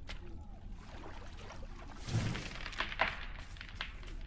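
A large creature's wings whoosh past overhead.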